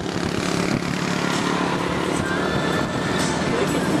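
A motorcycle passes close by.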